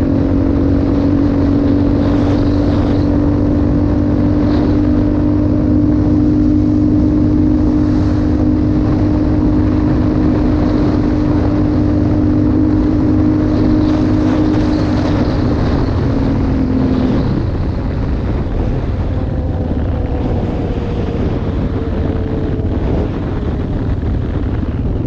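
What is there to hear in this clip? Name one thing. Tyres crunch over a rough gravel road.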